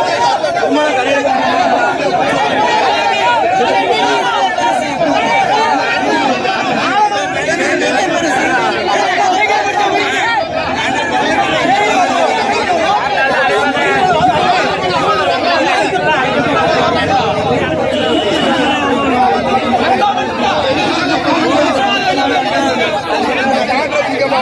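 A large crowd of men murmurs and calls out outdoors.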